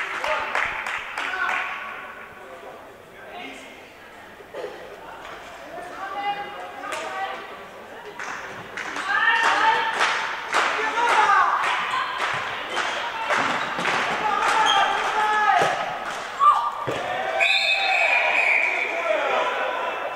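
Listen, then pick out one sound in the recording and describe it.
A ball bounces on a hard floor, echoing in a large hall.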